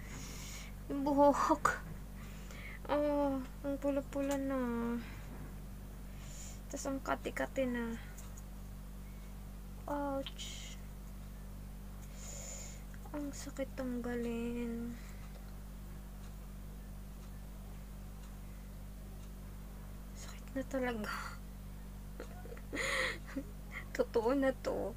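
A young woman talks close to the microphone in short bursts.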